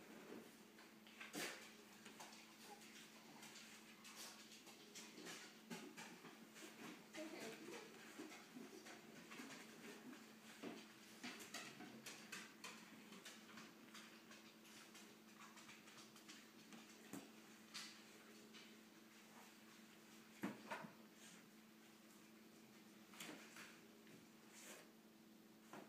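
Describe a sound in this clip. A small child handles plastic toys and books, with small clacks and rustles.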